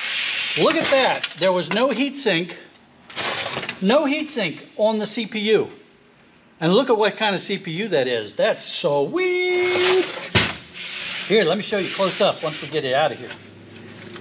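A middle-aged man talks calmly, explaining.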